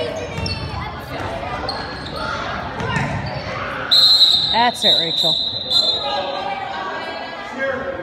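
Young girls shout and call out to each other in an echoing hall.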